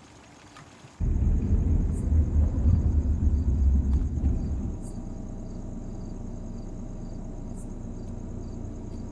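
A car engine rumbles low and steady, heard from inside the car.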